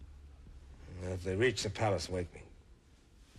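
A man speaks quietly and earnestly, close by.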